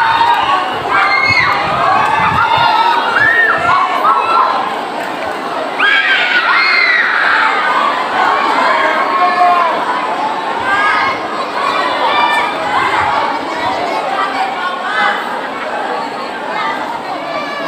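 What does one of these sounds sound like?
A large crowd of people chatters and calls out loudly all around, outdoors.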